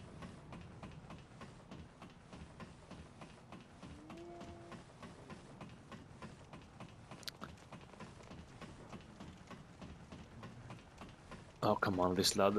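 Footsteps clank steadily on metal ladder rungs.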